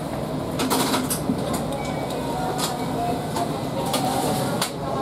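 Short clicks and rattles sound from the train now and then.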